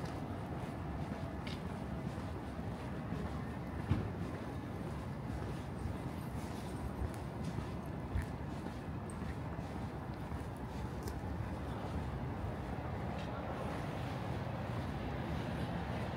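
Footsteps tap steadily on pavement close by.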